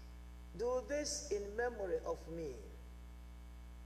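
A man sings a short chanted phrase through a microphone in a large echoing hall.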